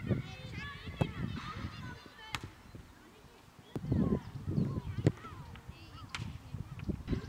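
A football is kicked hard with a dull thump.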